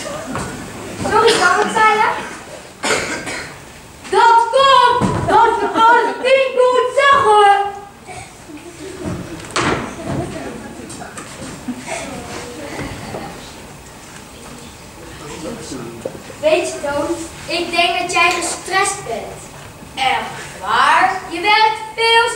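A second child answers with animation, shouting at times.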